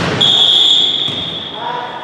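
A man shouts instructions from the sideline.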